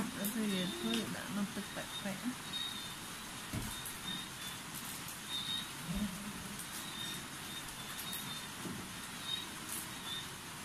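Wooden chopsticks poke at noodles in water on a ceramic plate.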